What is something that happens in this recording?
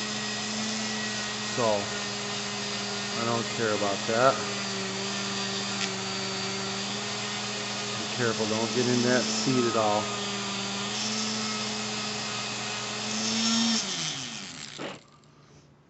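A small electric rotary tool whines steadily, then winds down.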